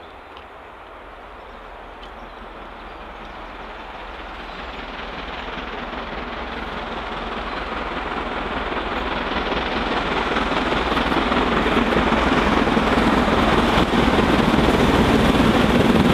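A steam train approaches along the track, rumbling louder and louder.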